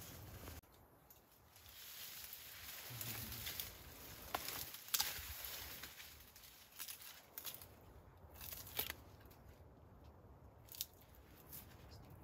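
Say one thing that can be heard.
A chimpanzee chews and crunches plant stems close by.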